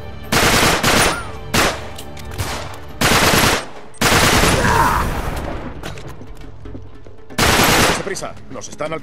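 Gunfire rattles in loud bursts.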